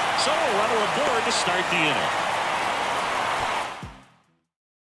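A large crowd murmurs and cheers in a ballpark.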